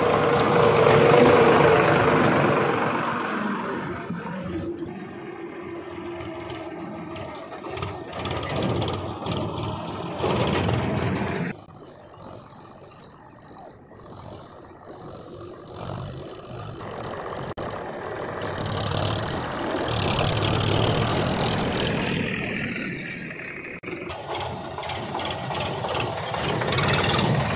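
Tyres crunch over dry stubble and dirt.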